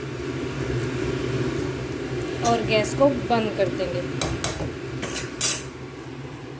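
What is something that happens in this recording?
A spoon scrapes and stirs in a metal pan.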